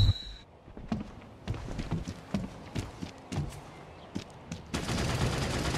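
Footsteps thud on a wooden floor.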